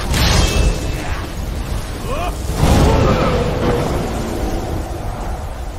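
A dragon roars loudly overhead.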